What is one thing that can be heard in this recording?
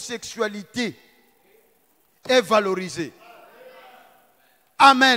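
A man preaches with animation into a microphone, with short pauses.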